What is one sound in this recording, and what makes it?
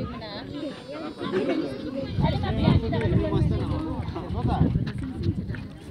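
A crowd of men and children chatter nearby outdoors.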